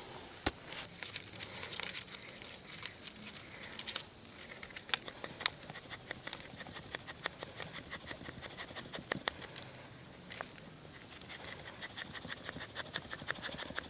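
A knife scrapes rapidly against a wooden stick, shaving off flakes.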